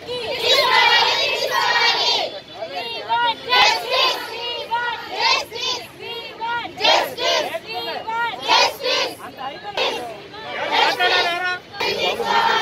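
A crowd of young women chants slogans loudly outdoors.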